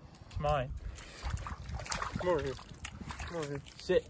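Water splashes as a dog steps through a shallow stream.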